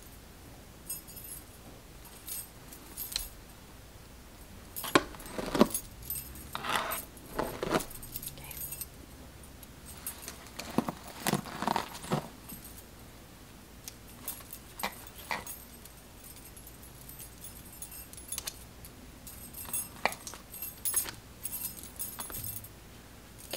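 Hands rustle through long hair.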